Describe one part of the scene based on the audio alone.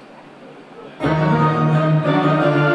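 A rock band starts playing loudly.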